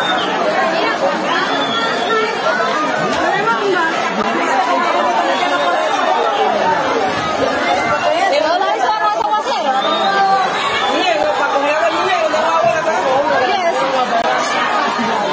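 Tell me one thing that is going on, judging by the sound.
A crowd of people shouts and chatters loudly outdoors.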